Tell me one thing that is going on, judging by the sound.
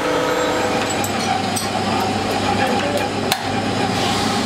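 Metal parts clink as a man handles them.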